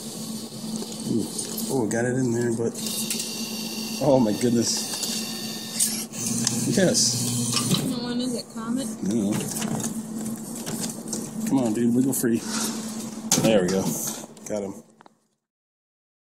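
A claw machine's motor whirs as the claw moves and lifts a prize.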